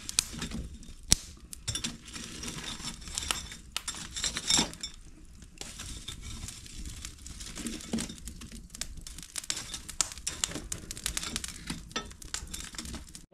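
Metal tongs scrape and clink against a grill.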